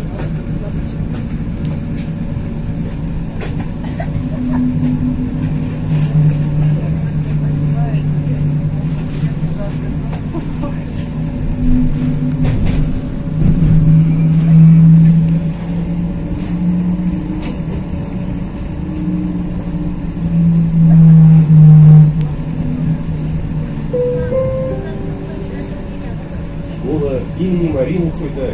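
A vehicle's engine hums steadily, rising and falling in pitch.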